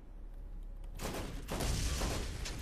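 A rifle fires loud shots that echo.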